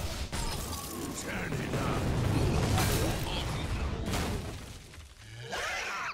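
Game effects whoosh and crash as creatures attack.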